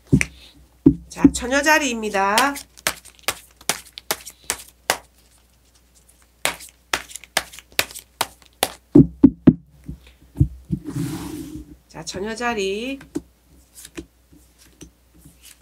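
Tarot cards click and snap as hands shuffle and spread them.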